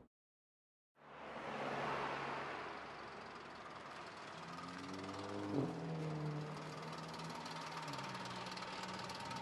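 A car engine idles nearby with a low, steady hum.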